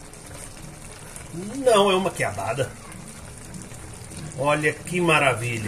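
Food sizzles and bubbles in a pan.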